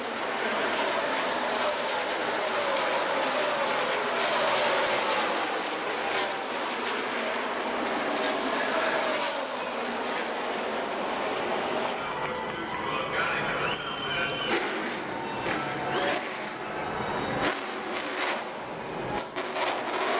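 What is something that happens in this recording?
A crowd cheers and roars loudly outdoors.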